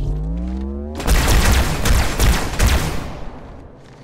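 Energy blasts crackle and burst loudly.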